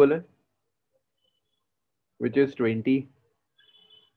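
A young man speaks calmly into a microphone in short phrases.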